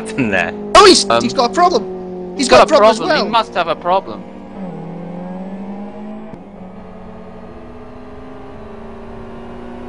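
Racing car engines drone steadily as cars speed past.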